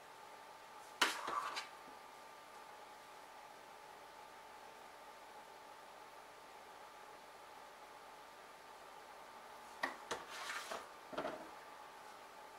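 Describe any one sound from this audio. Kitchen utensils clink and knock against dishes.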